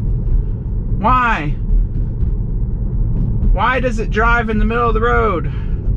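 Tyres hum steadily on the road inside a moving car.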